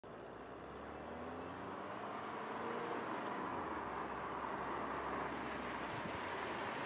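A car approaches on a wet road, its tyres hissing louder as it nears.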